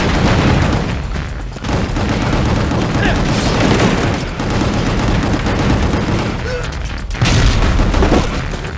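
Heavy music with a driving beat plays loudly.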